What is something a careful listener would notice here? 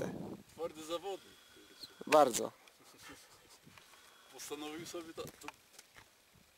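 A young man talks with animation outdoors.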